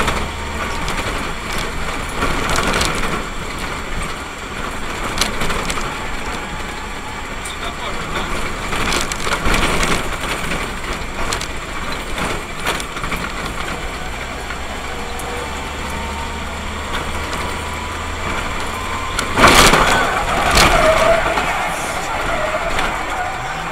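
Tyres rumble over rough asphalt.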